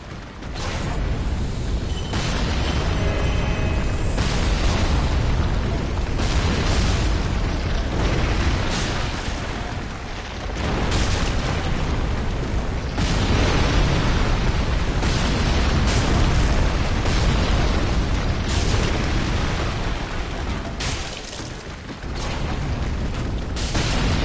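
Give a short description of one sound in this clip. Armour clanks and footsteps scrape on stone.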